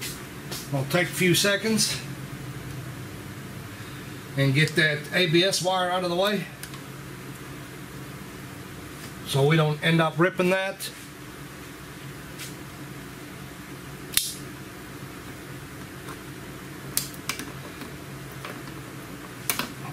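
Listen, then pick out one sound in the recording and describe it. Metal tools click and clank against metal parts.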